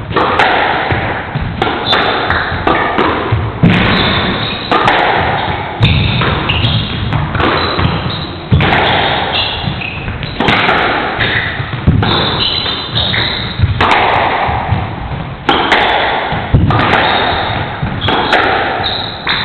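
Rackets strike a squash ball hard, with sharp smacks echoing around a hard-walled court.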